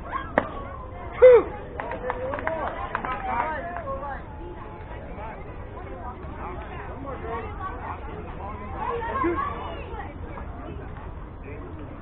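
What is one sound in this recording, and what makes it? Children and adults call out and chatter across an open field.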